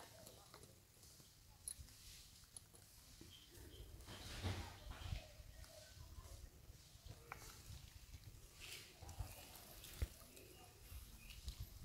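Leaves and twigs rustle as monkeys move.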